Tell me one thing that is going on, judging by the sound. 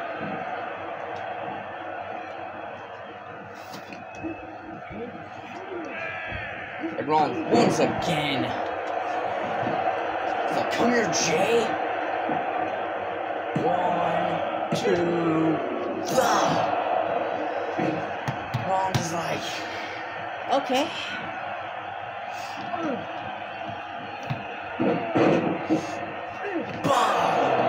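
A crowd cheers loudly throughout a large arena.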